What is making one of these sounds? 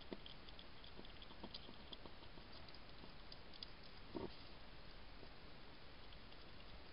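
A hedgehog chews food with soft wet clicks close by.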